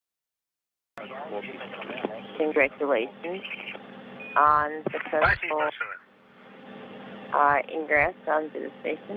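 Men speak with animation over a radio link.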